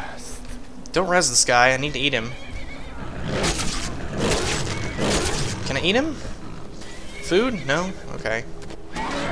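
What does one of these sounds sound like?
A beast snarls and roars fiercely.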